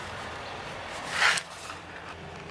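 Paper rustles as a sheet is lifted.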